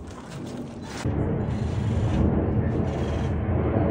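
Wind blusters across the microphone outdoors.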